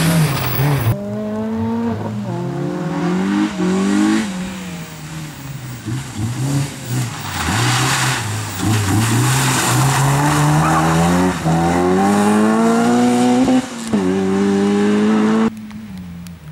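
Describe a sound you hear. A car engine revs hard, rising and falling in pitch as the car speeds through tight turns.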